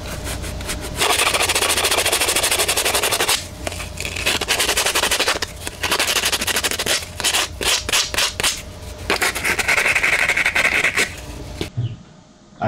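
Sandpaper scrapes rapidly against metal.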